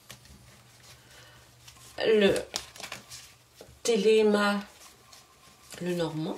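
Playing cards rustle softly as they are shuffled by hand.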